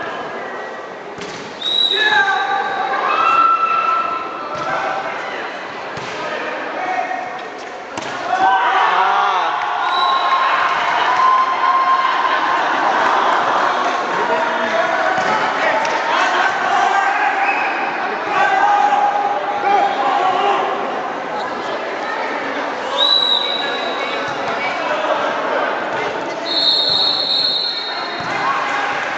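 A crowd of young people chatters and shouts in a large echoing hall.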